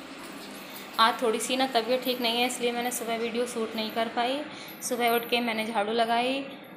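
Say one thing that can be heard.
A middle-aged woman speaks calmly, close by.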